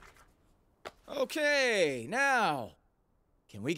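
A young man speaks with animation.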